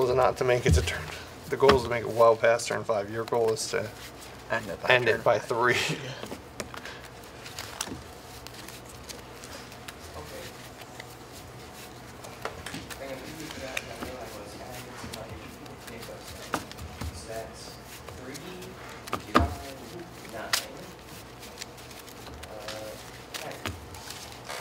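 Playing cards riffle and slap softly as they are shuffled.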